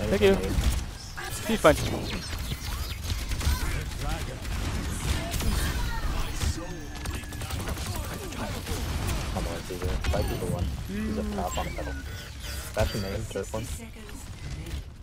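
Video game gunfire crackles in rapid bursts.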